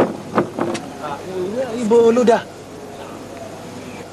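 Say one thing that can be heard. A man shouts a question.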